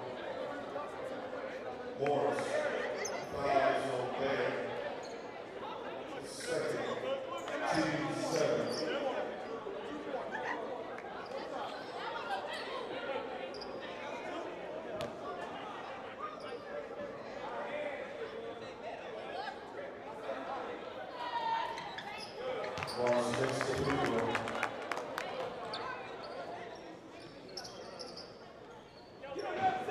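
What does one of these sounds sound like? A crowd chatters and calls out in a large echoing gym.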